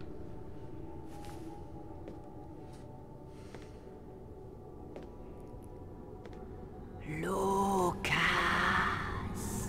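Footsteps echo in a large hall.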